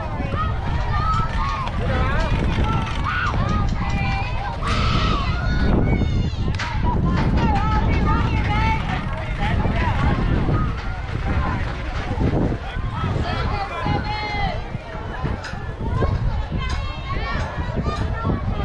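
Young girls call out and cheer from across an open field.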